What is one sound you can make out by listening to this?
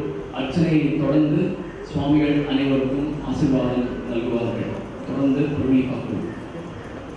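A woman sings through a loudspeaker in a large room.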